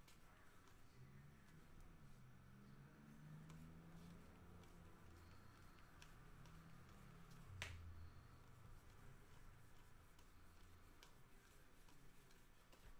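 Trading cards flick and shuffle in a hand.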